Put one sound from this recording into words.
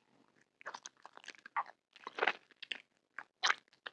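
Gummy candy squishes wetly as teeth bite into it.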